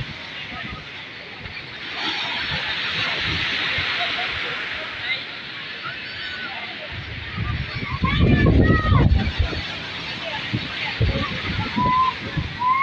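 Waves wash and churn in the shallows.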